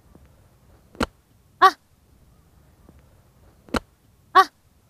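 A golf club strikes sand with a sharp thud.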